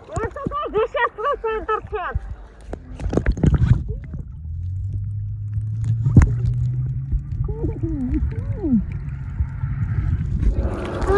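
Water swirls and rumbles, muffled underwater.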